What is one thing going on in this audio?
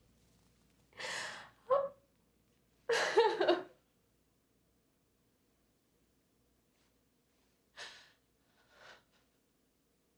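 A woman cries out and sobs close by.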